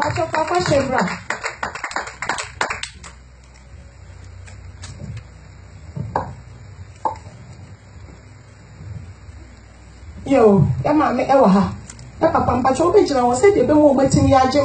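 A woman sings into a microphone through loudspeakers in an echoing room.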